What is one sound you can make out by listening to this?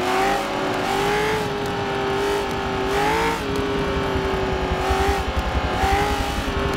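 A racing car engine drones at high, steady speed.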